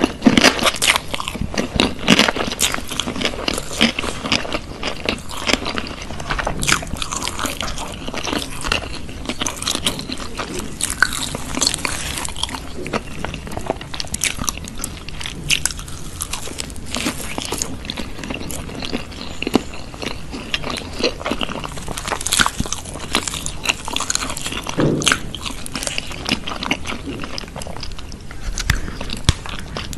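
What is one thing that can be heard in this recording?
A woman crunches on crispy fried chicken close to a microphone.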